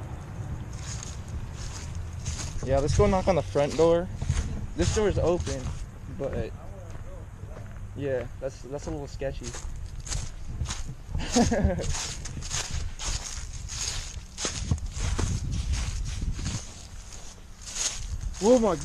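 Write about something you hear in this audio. Footsteps crunch on grass and leaves.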